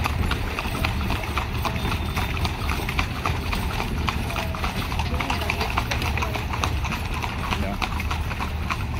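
Horse-drawn carriage wheels rumble over the road.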